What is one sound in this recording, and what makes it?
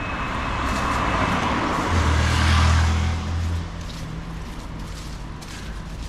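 Traffic rumbles softly in the distance.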